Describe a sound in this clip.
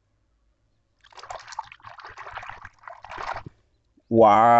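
Water sloshes and splashes in a small bowl.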